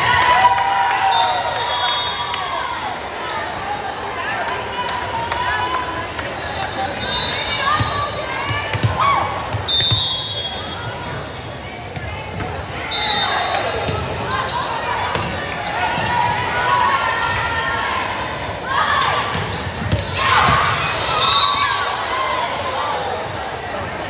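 Players and spectators shout and cheer in a large echoing gym.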